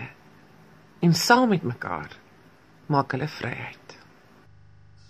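A woman speaks close to a phone microphone.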